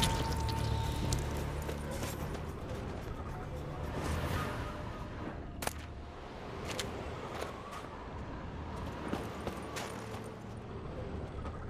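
Footsteps crunch on gravel and wooden planks.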